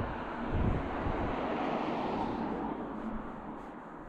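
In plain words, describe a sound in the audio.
A car drives past on the road and fades away.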